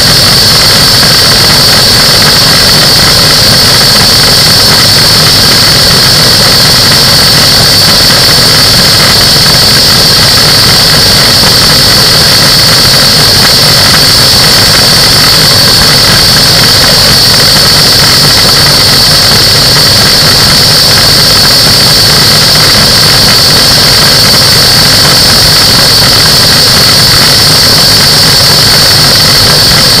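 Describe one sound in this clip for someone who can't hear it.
A propeller engine drones loudly and steadily close by.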